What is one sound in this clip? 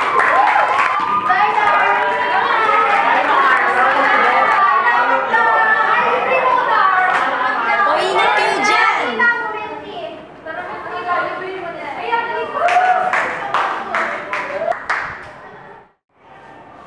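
A teenage girl talks and laughs cheerfully nearby.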